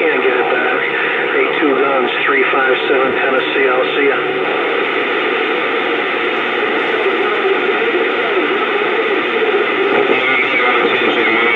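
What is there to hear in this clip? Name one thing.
Static hisses and crackles steadily from a radio loudspeaker.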